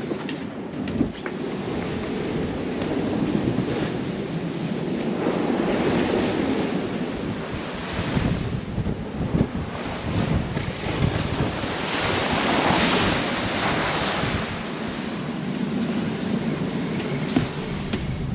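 Waves rush and splash against a sailing boat's hull.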